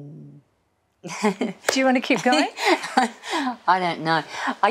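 A middle-aged woman laughs.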